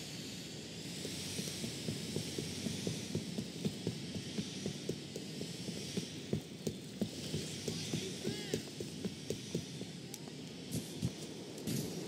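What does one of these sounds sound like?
Footsteps slap quickly on pavement.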